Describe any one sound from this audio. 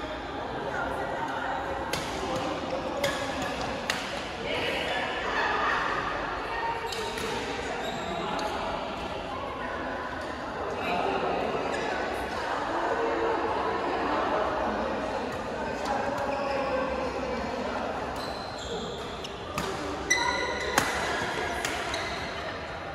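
Shuttlecocks are struck with rackets in sharp pops, echoing in a large hall.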